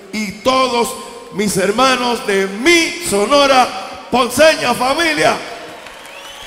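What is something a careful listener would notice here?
An elderly man sings loudly into a microphone over a loudspeaker, in a large echoing hall.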